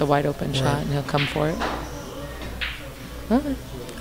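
Pool balls click together as a cue ball strikes them.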